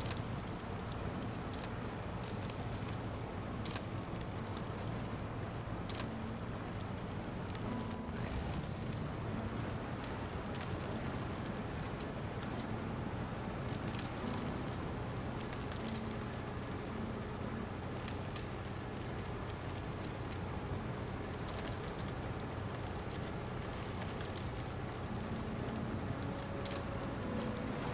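Water splashes and sloshes around truck wheels.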